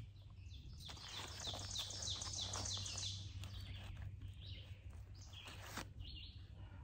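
A paper wrapper crinkles and rustles close by.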